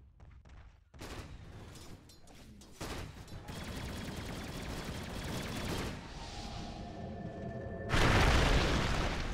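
Fantasy game battle effects clash and crackle.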